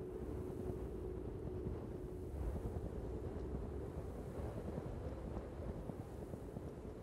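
Wind howls steadily in a snowstorm.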